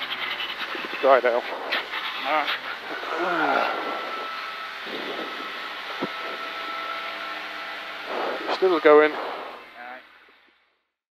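A man calls out quickly through an intercom.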